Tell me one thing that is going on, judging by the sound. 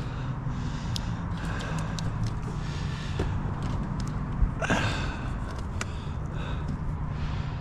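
Plastic cable tubing rustles and clicks as it is handled.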